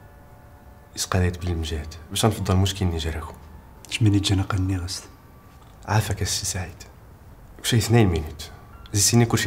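A man with a deeper voice speaks calmly and persuasively close by.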